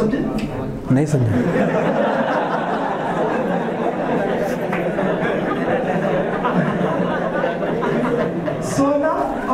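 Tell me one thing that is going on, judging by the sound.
A group of young men laugh together.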